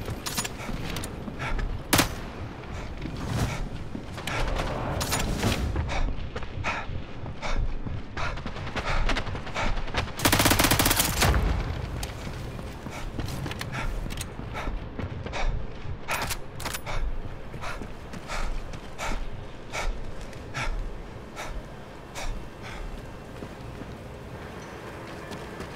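Footsteps thud quickly on a metal roof.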